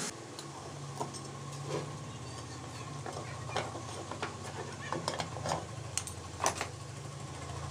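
Metal parts clink and scrape against each other on a hard surface.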